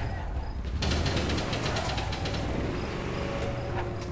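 A car engine idles and revs.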